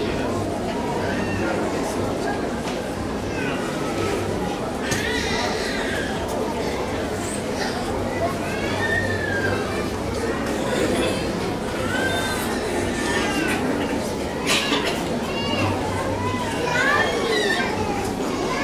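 A crowd of men and women pray aloud together in an echoing room.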